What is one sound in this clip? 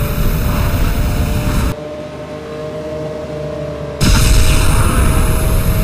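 A racing car engine roars loudly and steadily, dropping away for a moment before roaring again.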